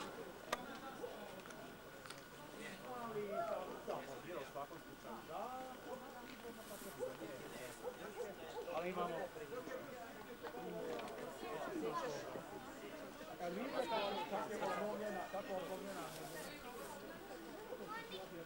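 Children shout and call to each other outdoors at a distance.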